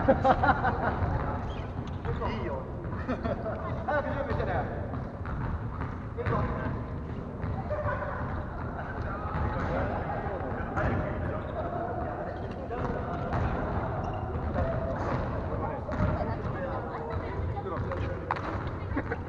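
A volleyball thumps off players' hands now and then.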